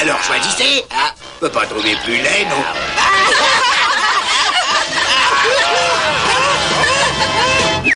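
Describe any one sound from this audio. A group of cartoon voices, men and women, laugh loudly and heartily.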